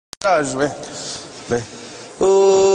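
A young man sobs quietly, close by.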